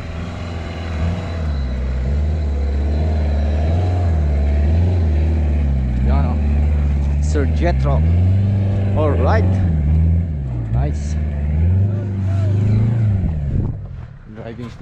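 A four-wheel-drive truck engine revs as the truck climbs over rough dirt.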